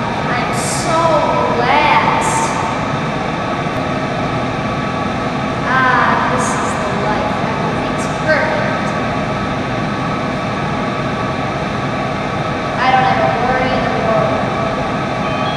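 A boy speaks calmly and briefly nearby.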